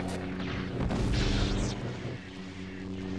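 A lightsaber hums and swings with a buzzing whoosh.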